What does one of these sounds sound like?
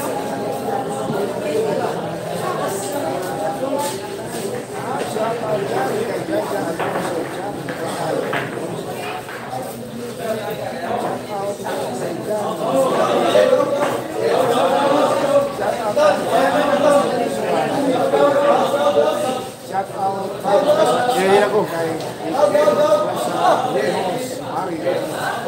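A crowd of men chatters loudly nearby.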